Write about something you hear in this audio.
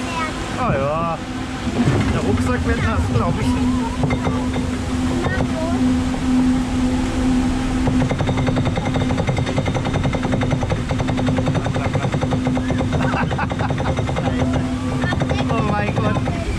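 A lift chain clanks and rattles steadily as a boat climbs a ramp.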